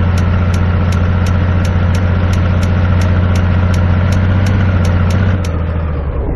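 A turn signal ticks rapidly.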